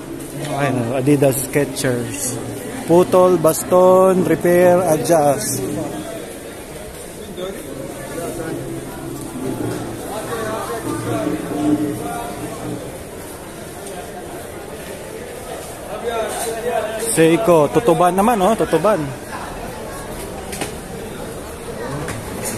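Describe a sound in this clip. Voices murmur in a large indoor hall.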